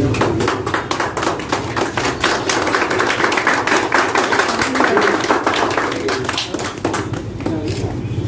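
A group of people claps and cheers.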